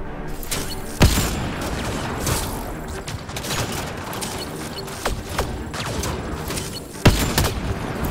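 Sniper rifle shots crack with heavy booms.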